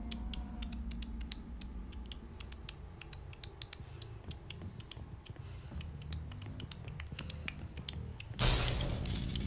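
Footsteps clack on a hard floor.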